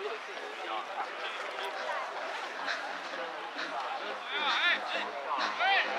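Young men and spectators chatter and call out across an open field.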